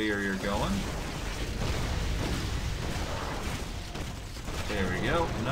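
Magic spells crackle and blast in a fight.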